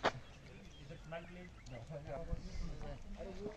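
Men talk to each other in the distance outdoors.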